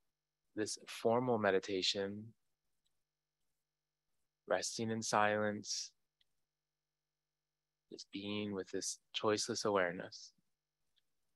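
A man speaks calmly into a microphone, in short phrases with long pauses.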